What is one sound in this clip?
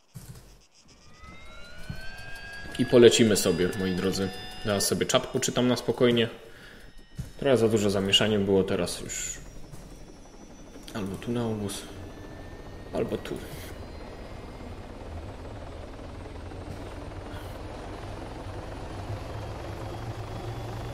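A helicopter engine starts up with a rising whine and keeps droning.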